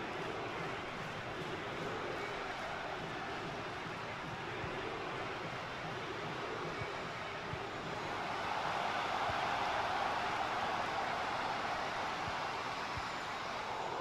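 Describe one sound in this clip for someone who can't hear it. A large crowd roars steadily in a stadium, swelling louder partway through.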